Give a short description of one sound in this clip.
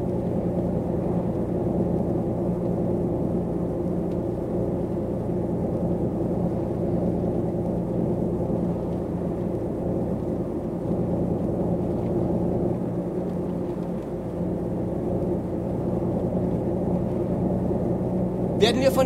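Tyres roll on a road with a low rumble.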